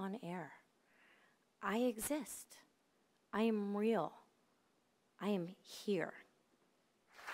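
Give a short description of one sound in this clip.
A woman speaks expressively into a microphone, with long drawn-out words.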